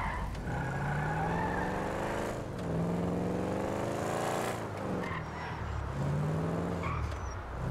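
A car engine revs loudly, rising and falling as it accelerates through the gears.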